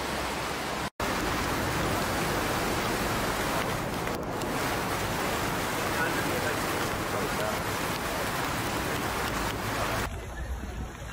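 Cars plough through deep floodwater with a steady rushing splash.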